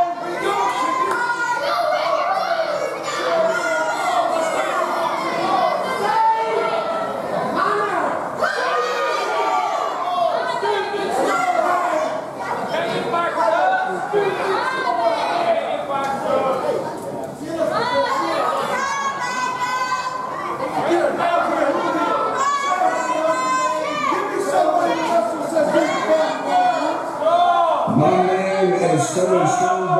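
A man speaks loudly through a microphone over loudspeakers in a large echoing hall.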